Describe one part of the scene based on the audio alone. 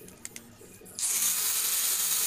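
An angle grinder whirs loudly.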